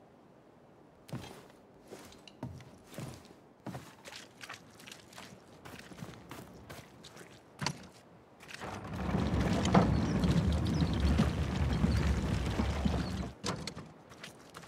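Footsteps scuff and thud on wooden boards and dirt.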